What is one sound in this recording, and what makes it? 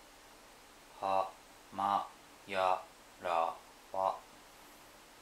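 A talking pen plays a short series of spoken syllables through a small speaker.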